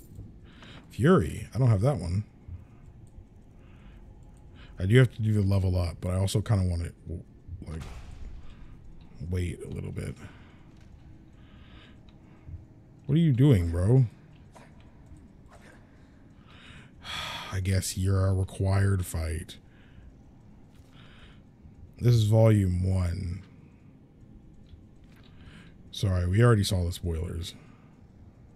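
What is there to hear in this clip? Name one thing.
A young man talks with animation into a microphone, in short bursts with pauses.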